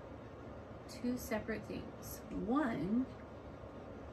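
An older woman speaks briefly and expressively, close to a microphone.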